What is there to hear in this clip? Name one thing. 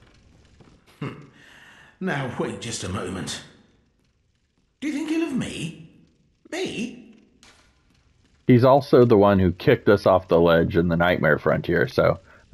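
An elderly man speaks slowly in a raspy, sly voice, close by.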